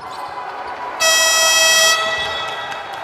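A buzzer sounds loudly.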